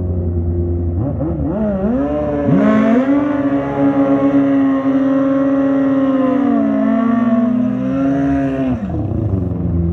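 A motorcycle engine revs up and down loudly, then settles back.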